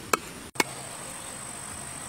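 A knife chops on a board.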